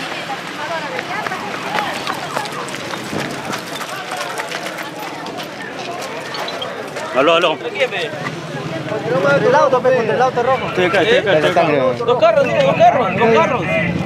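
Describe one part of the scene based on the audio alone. A crowd of people talk over one another outdoors.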